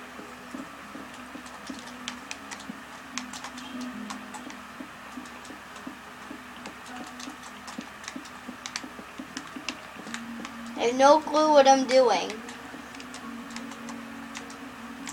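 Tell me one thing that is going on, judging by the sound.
Soft, quick taps and clicks of video game sound effects play from a television.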